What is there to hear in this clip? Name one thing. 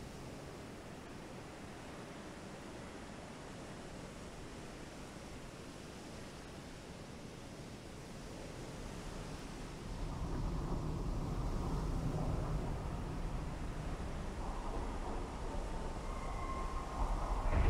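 Waves wash steadily on open sea.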